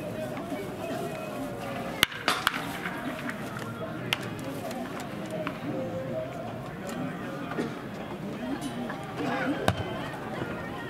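Young men talk to each other outdoors at a distance.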